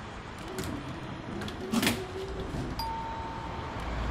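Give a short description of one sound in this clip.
Tram doors slide shut with a thud.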